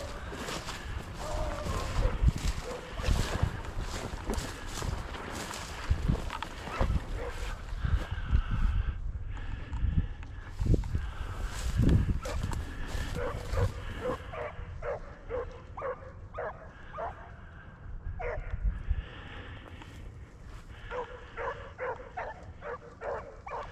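Dry grass rustles and crunches underfoot with steady walking steps.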